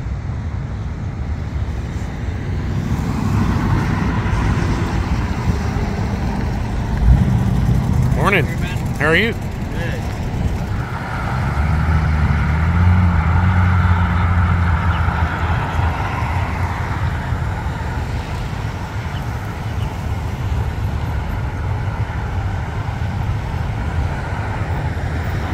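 A hot rod's engine rumbles as it drives past.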